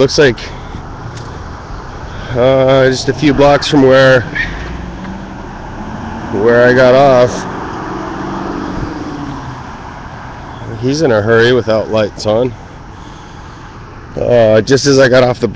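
Traffic hums faintly along a road outdoors.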